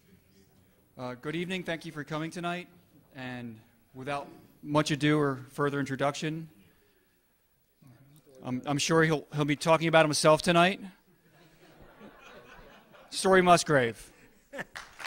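A man speaks calmly into a microphone over loudspeakers, with pauses.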